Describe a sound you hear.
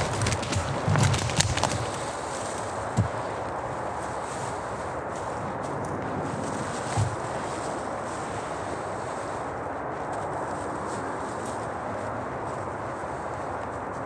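Dry bracken fronds rustle and crackle in a hand.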